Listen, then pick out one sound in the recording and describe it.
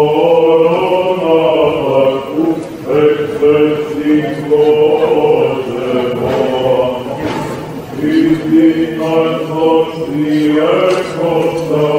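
A choir of men chants in unison in a large echoing hall.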